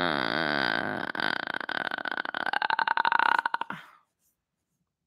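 A young man makes warbling vocal sounds close to the microphone.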